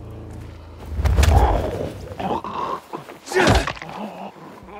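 A heavy blow thuds against a body.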